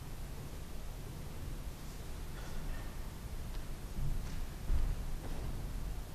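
Soft footsteps sound in a large echoing hall.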